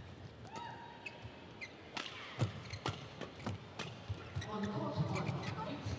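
Rackets strike a shuttlecock back and forth in a quick rally.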